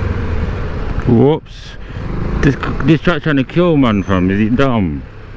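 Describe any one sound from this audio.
A motorcycle engine revs up and down several times.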